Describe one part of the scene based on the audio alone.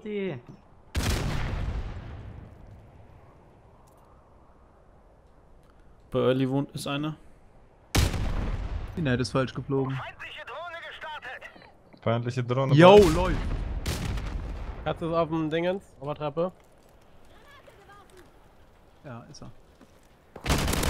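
Gunshots bang with a ringing echo.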